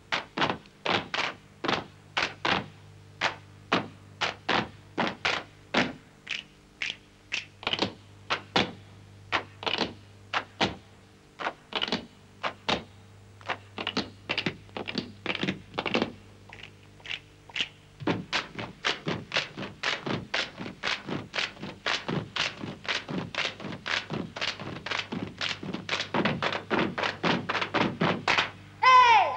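Boots stomp and tap in a quick rhythm on a hard floor.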